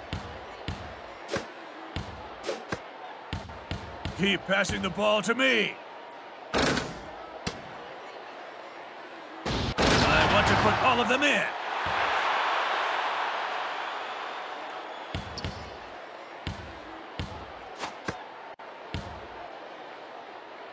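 A basketball bounces repeatedly on a wooden court.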